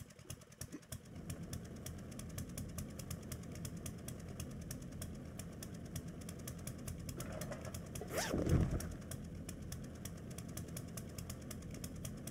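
A gas flame roars steadily nearby.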